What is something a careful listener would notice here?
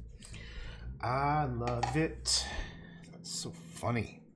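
A middle-aged man talks calmly close to a microphone.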